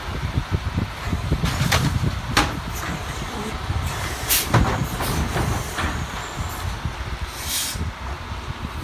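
A mechanical arm on a garbage truck lifts and empties a bin with clanks and thuds.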